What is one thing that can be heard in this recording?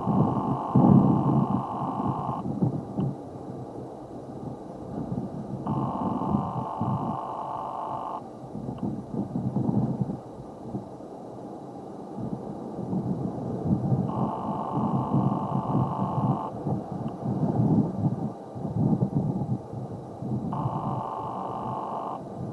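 Shoelaces rustle softly as they are pulled and tied.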